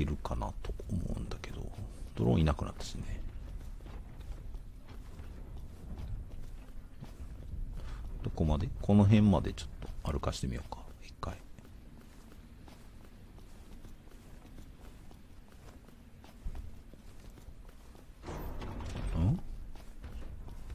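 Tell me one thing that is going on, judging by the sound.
Footsteps crunch softly on snowy ground.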